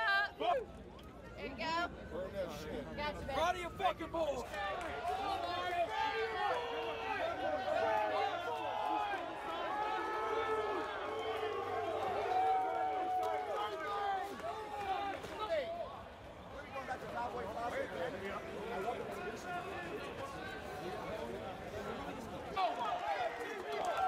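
A crowd of men chants and shouts loudly outdoors.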